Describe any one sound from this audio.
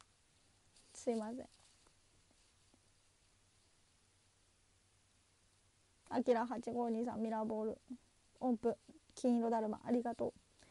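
A young woman speaks softly and close to a microphone, in short bursts.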